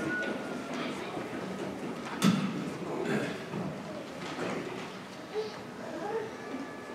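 A crowd of young people chatter and murmur in a large echoing hall.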